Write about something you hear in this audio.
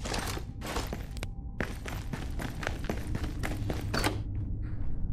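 Footsteps tap quickly across a hard floor.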